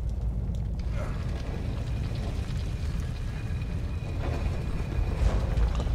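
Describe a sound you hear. A heavy stone wall grinds and rumbles as it slides open.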